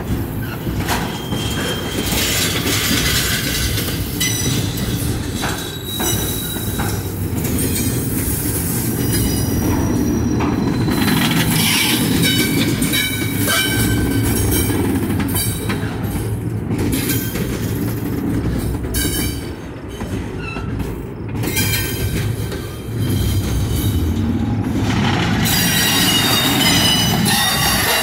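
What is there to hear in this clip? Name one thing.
Steel wheels squeal and screech against the rails.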